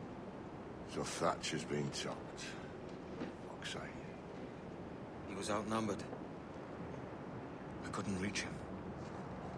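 A man speaks in a low, rough voice, close by.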